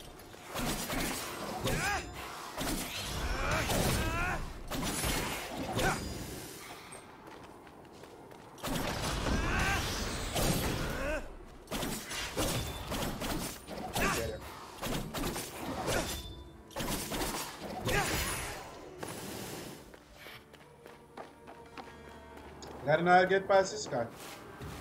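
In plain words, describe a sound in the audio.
Game sound effects of blades swishing and clashing play.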